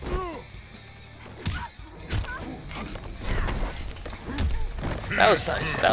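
Heavy blows thud as two fighters trade punches.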